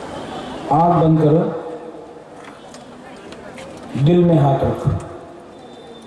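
A man speaks loudly into a microphone through loudspeakers.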